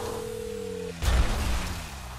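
A car lands hard on the ground with a heavy thud.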